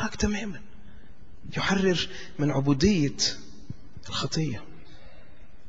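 A middle-aged man speaks with emphasis through a microphone, in bursts with pauses.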